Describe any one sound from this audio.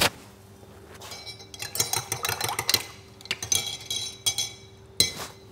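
Cups and dishes clink and clatter.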